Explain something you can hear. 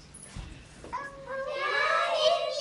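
A group of young voices sings together.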